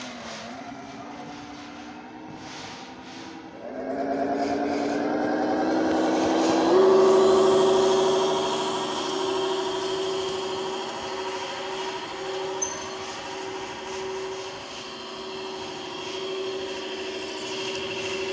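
The electronic sound unit of a radio-controlled model semi truck plays a simulated diesel truck engine, rising in pitch as the truck speeds up.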